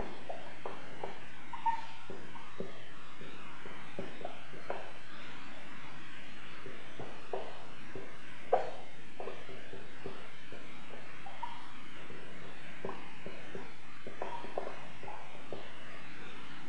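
A felt-tip marker squeaks and scratches across paper in short strokes.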